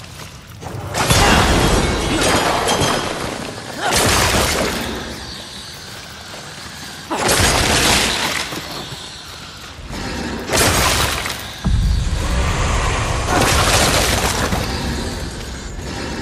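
Fiery blasts whoosh and roar in bursts.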